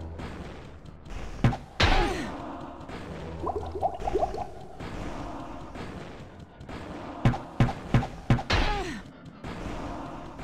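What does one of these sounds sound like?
A fireball whooshes and bursts with a fiery blast.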